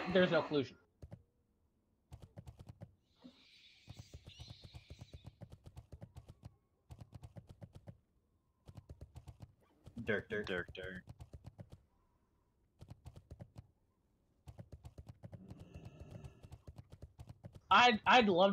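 A mount's hooves thud in a quick, steady gallop.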